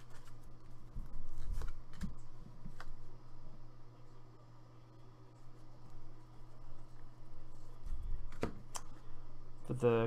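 Trading cards rustle and slide against each other as they are shuffled.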